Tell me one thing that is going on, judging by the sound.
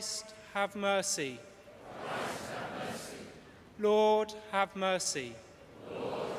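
A man sings a short chanted phrase through loudspeakers in a large echoing hall.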